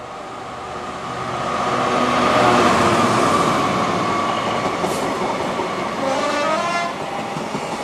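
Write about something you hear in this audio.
A diesel locomotive roars past close by, its engine loud and then fading.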